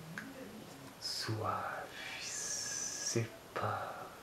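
A man sniffs deeply, close up.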